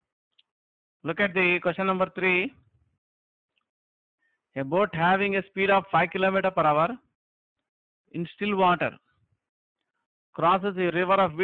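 A man speaks calmly into a microphone, explaining in bursts with pauses.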